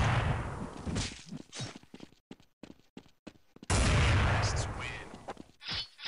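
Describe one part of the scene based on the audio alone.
Gunshots crack loudly with a short echo.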